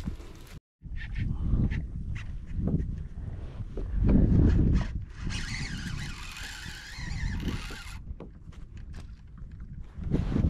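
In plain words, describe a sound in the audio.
A baitcasting reel whirs as line is wound in.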